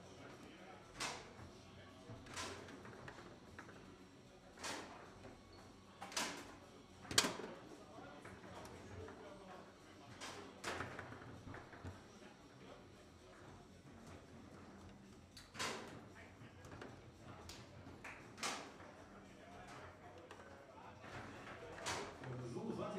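A foosball ball cracks sharply against the goals and rods.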